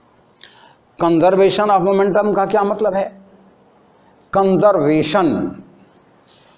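An elderly man speaks clearly and calmly nearby.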